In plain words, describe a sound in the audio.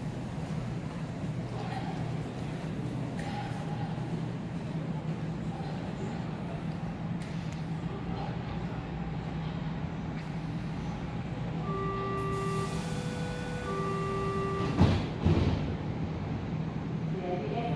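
A stopped electric train hums steadily nearby.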